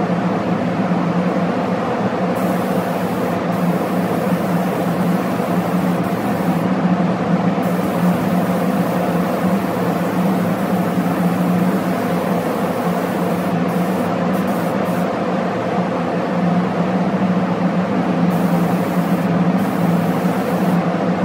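A spray gun hisses.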